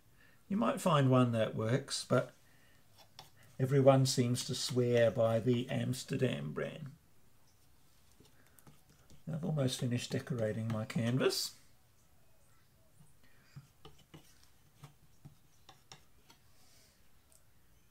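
A palette knife scrapes and taps softly on a canvas.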